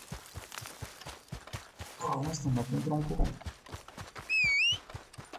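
Running footsteps thud quickly on dry ground.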